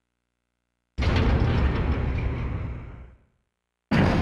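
A heavy metal gate slides open with a loud rumble.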